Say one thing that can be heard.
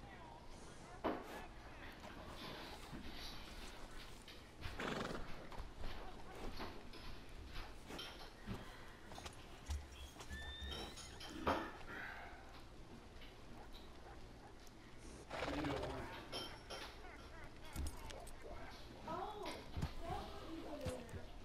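A horse's hooves clop slowly on cobblestones.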